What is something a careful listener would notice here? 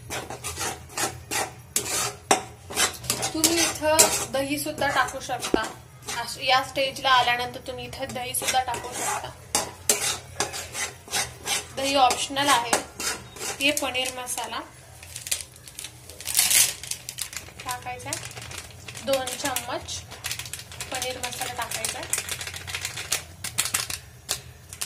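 A metal spatula scrapes and clatters against a pan.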